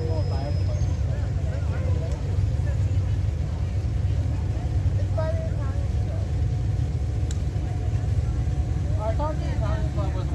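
Children and adults chatter nearby.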